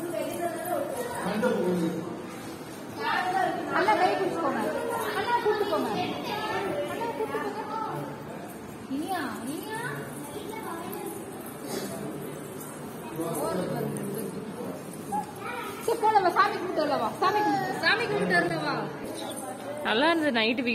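Adults talk nearby in lively voices.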